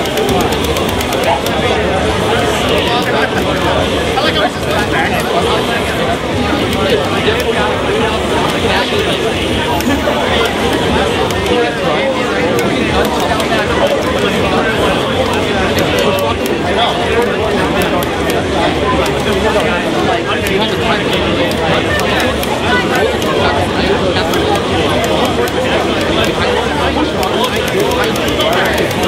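Fighting game hits and blasts play through loudspeakers.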